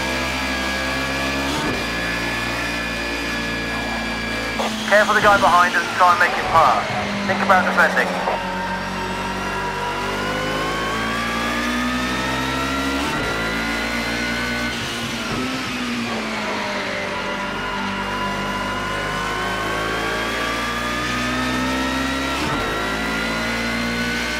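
A racing car engine roars steadily, rising in pitch and dropping at each gear change.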